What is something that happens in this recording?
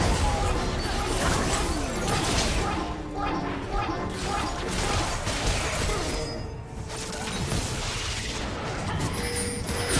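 Game spell effects whoosh and crackle in quick bursts during a battle.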